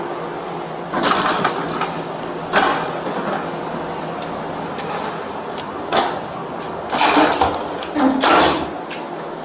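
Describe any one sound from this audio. A heavy metal-framed door opens and clanks.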